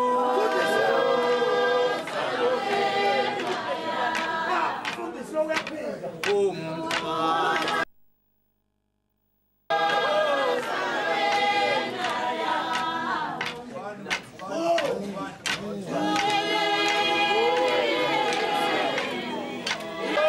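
A middle-aged man sings close by.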